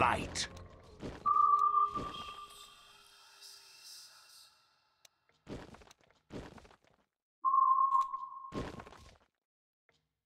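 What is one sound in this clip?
Short electronic chimes and effects sound from a game.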